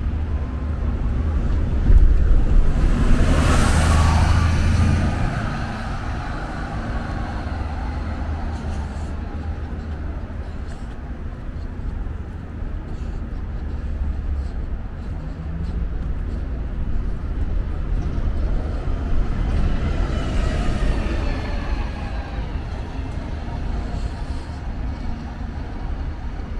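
Wind buffets and rumbles against a moving microphone.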